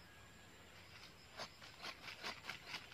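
Hands scrape and rustle through dry soil and leaves.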